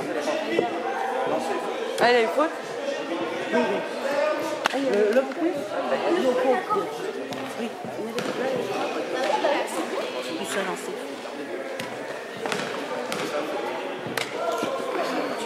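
Young players' voices call out and chatter, echoing in a large hall.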